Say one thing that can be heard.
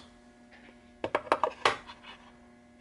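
A metal tool clicks and knocks against wood as it is set down.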